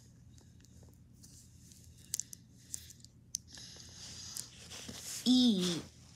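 Fingers handle a small plastic toy.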